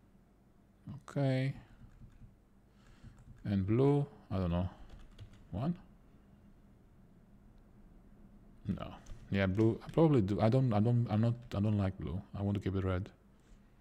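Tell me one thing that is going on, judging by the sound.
A middle-aged man speaks calmly and haltingly into a close microphone.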